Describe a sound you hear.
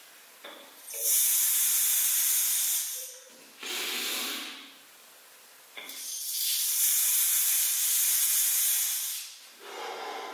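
A man blows hard with a rushing hiss of breath.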